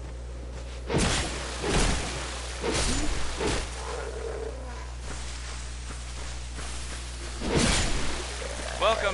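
Sword blows thud and clash.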